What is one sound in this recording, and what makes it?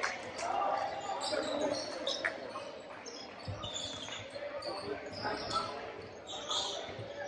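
Voices murmur and call out in a large echoing gym.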